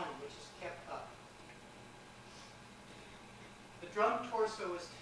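A man speaks calmly to an audience in a large room.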